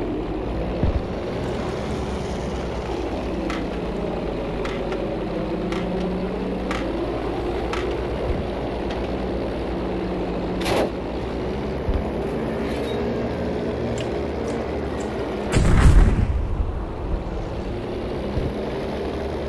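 Propeller engines drone steadily and loudly.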